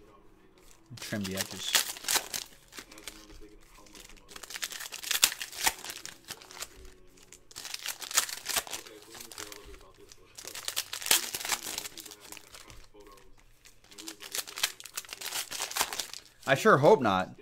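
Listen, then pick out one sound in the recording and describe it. Foil wrappers crinkle and tear as packs are ripped open.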